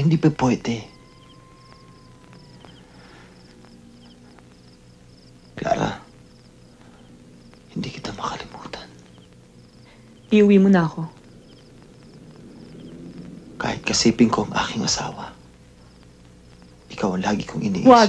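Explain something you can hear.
A woman speaks quietly and close by in short phrases.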